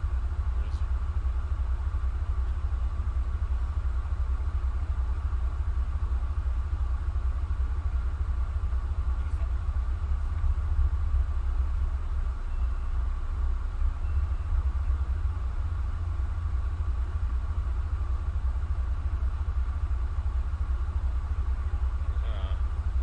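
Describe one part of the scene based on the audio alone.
Game music plays steadily with a deep, throbbing low beat.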